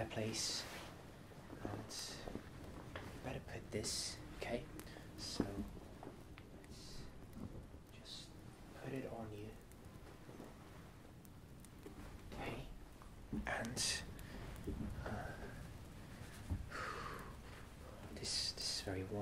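A young man talks softly and close up, in a whisper-like voice.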